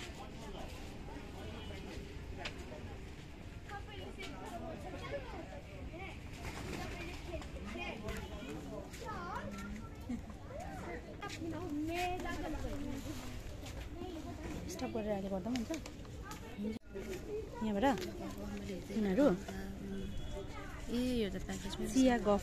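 Men and women talk in low voices nearby, outdoors.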